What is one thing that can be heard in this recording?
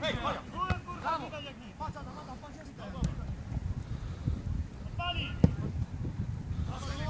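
Players shout and call out to each other across an open field.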